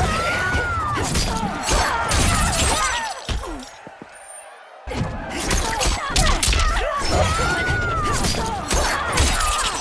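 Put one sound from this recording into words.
Heavy blows and blade slashes land in quick bursts.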